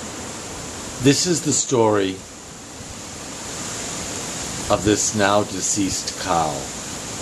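A man speaks quietly and expressively close by, in short bursts with pauses.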